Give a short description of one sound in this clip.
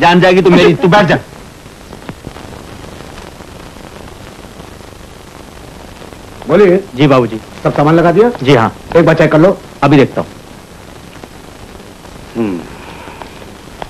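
A man speaks loudly and with emotion, close by.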